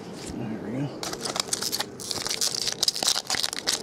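A foil wrapper crinkles and rustles.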